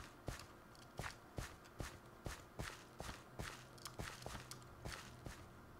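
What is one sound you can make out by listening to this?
Footsteps crunch steadily on soft ground at a quick walking pace.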